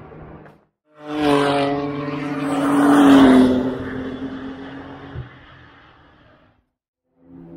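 A race car engine roars loudly as the car speeds past and fades away.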